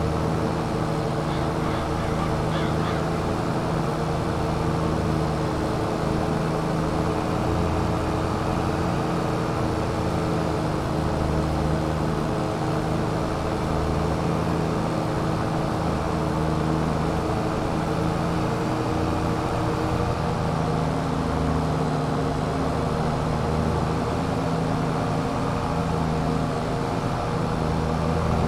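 A mower whirs as it cuts grass.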